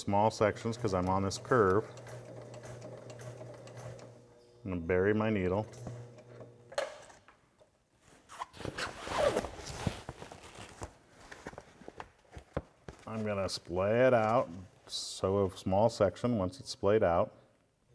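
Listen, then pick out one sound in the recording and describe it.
A sewing machine whirs as it stitches fabric.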